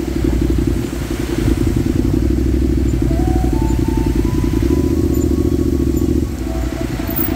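Many motorbike engines rumble and putter close by.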